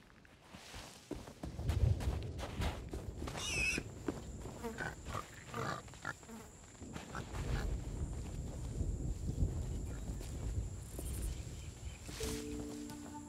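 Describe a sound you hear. Footsteps rustle through grass and leaves.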